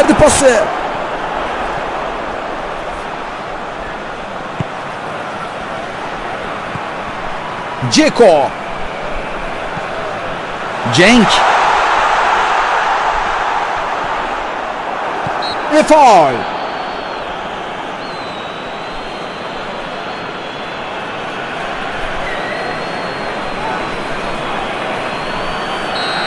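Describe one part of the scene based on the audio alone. A stadium crowd roars steadily in a large open space.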